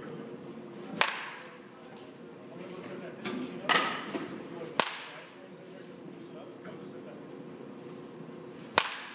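A bat sharply cracks against a ball several times, echoing in a large indoor hall.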